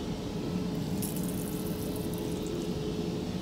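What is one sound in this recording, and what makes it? Water briefly runs from a tap into a basin.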